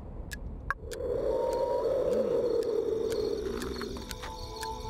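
A magic spell hums and swells loudly.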